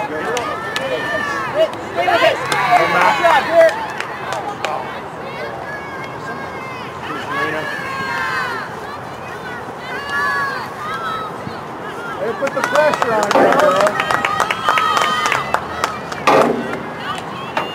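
A hockey stick smacks a ball.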